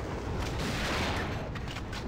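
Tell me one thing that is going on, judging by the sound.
A pickaxe swings through the air with a whoosh.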